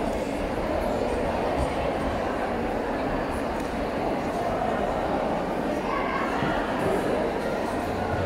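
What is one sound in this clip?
Keyboard music plays loudly through loudspeakers in a large echoing hall.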